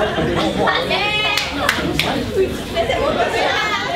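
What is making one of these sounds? Young women laugh nearby.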